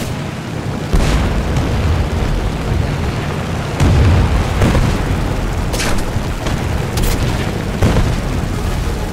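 Machine guns fire in short bursts.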